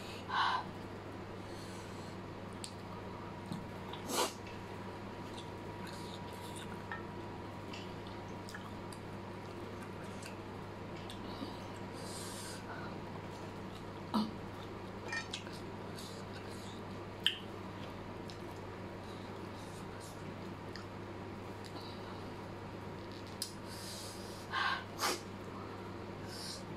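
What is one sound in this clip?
A young woman chews and slurps noodles close to the microphone.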